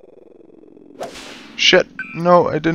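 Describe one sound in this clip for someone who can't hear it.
A golf club swings with a whoosh and strikes a ball.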